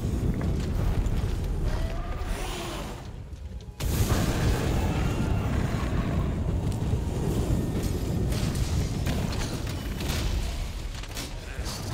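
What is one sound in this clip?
A sword clangs in sharp hits.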